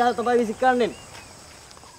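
A young man calls out loudly nearby.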